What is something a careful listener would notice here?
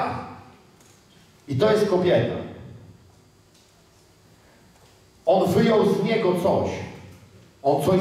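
A middle-aged man speaks with animation through a headset microphone in a large echoing hall, pausing between phrases.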